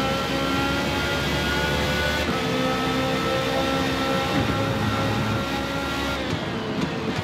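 A racing car engine screams at high revs.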